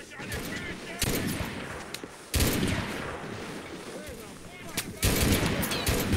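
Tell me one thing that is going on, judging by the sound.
Explosions boom loudly now and then.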